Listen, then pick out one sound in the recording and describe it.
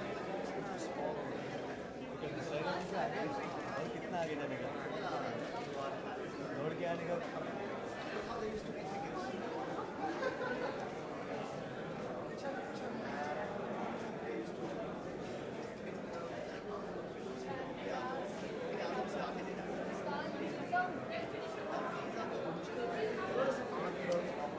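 A crowd of people chatters throughout.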